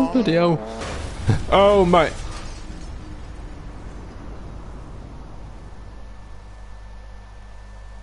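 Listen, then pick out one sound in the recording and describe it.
A car engine roars over gravel.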